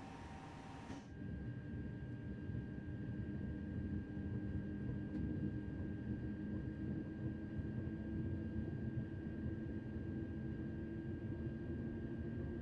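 An electric train's motors rumble and grow louder as it speeds up.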